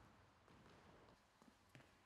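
A table tennis ball clicks on a table.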